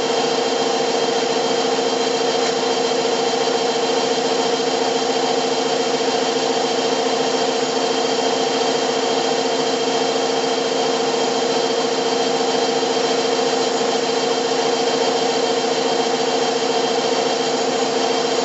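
A lathe motor hums steadily as it spins.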